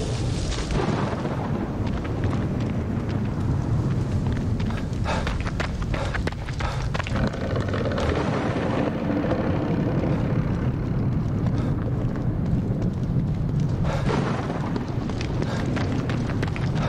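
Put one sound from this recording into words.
Footsteps crunch through grass and over wet pavement.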